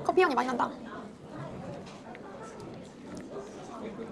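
A young woman bites into and chews soft cake.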